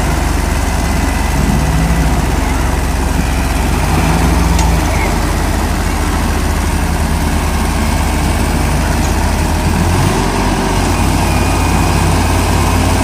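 Tractor tyres churn through wet mud.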